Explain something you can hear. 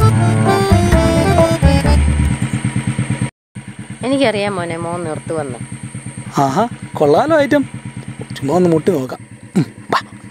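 A motorcycle engine idles steadily nearby.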